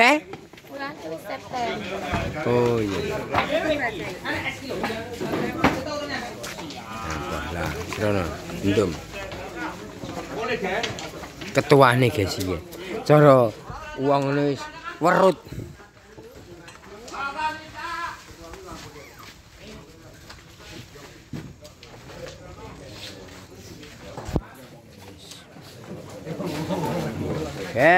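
Men and women talk and chatter nearby, in a lively crowd.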